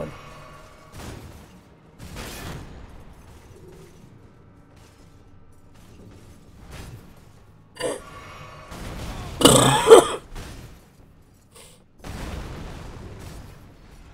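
A blade swings with a sharp whoosh.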